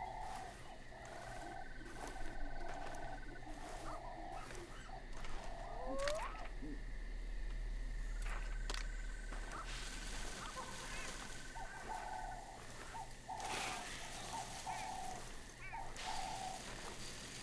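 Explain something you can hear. Footsteps crunch slowly on a gravel road.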